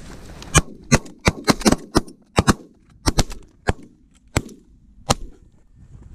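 Shotguns fire in a rapid burst of loud blasts outdoors.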